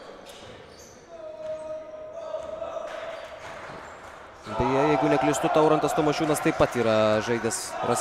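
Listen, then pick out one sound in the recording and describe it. A basketball thumps as it bounces on a wooden floor.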